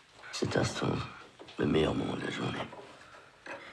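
A man speaks calmly and softly nearby.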